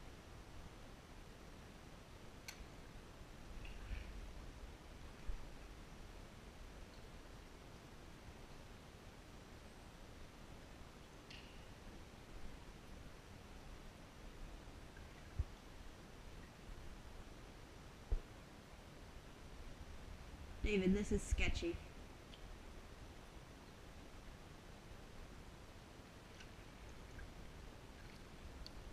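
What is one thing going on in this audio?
Water splashes softly from a paddle stroke.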